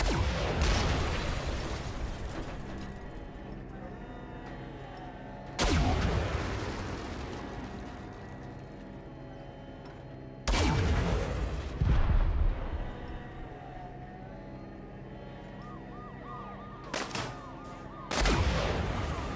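A tank cannon fires with booming blasts.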